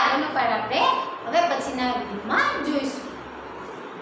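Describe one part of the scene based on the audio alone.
A young woman reads aloud clearly and close by.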